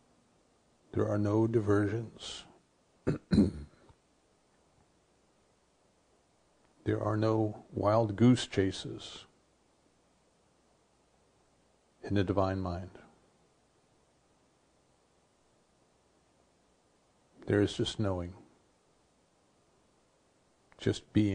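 An older man speaks calmly into a close microphone, in short phrases with pauses.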